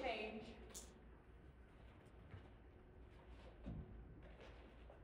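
A young woman speaks faintly in a large echoing hall.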